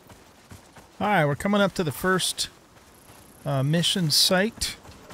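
An elderly man speaks into a microphone with animation.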